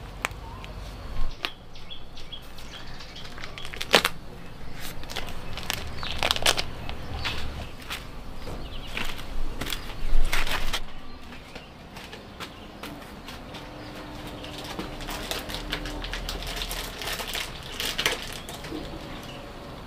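Plastic bags rustle as a hand handles them.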